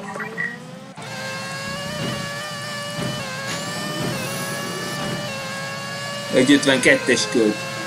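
A racing car engine revs up and accelerates.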